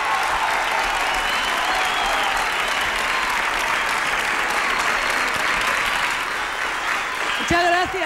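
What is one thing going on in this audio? A large audience claps and cheers loudly.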